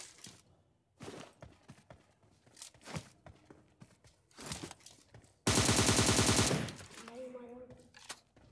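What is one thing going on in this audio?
Footsteps thud quickly on the ground as a soldier runs.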